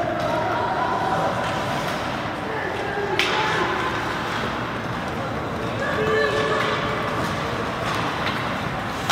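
A crowd murmurs in a large echoing rink.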